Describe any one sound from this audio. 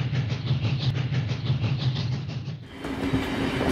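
A train chugs along with a steady rhythmic puffing.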